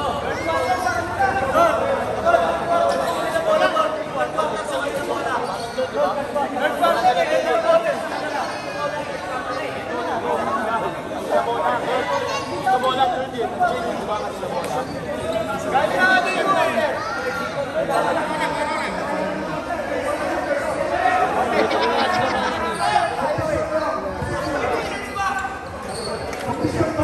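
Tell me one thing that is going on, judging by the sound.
A group of young men chatter and talk over one another close by.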